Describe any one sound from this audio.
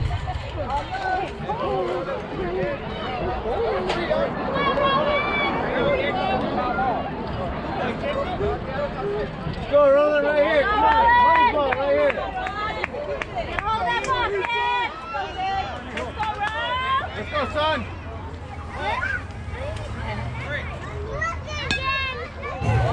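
Children and adults shout and cheer nearby outdoors.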